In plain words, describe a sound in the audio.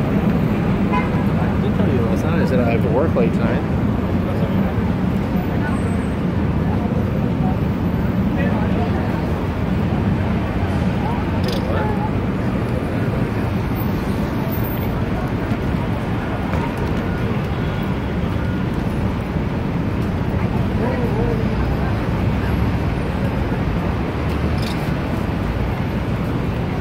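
Busy street noise with passing traffic and crowd murmur fills the air outdoors.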